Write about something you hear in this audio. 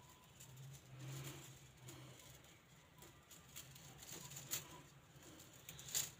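Plastic strands of filament rustle as hands handle them.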